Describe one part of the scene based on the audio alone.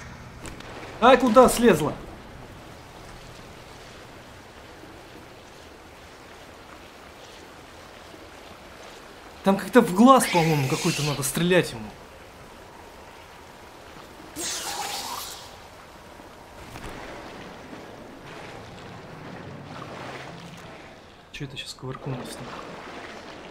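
A young man speaks in short animated bursts into a close microphone.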